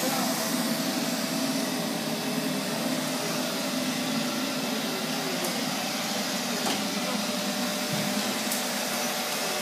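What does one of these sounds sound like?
A robot vacuum cleaner whirs steadily as it moves across a hard floor.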